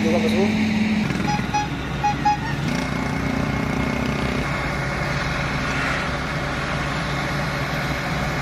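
A truck engine idles with a low drone.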